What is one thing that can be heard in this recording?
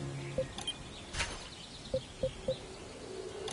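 Short electronic blips sound as menu options are selected.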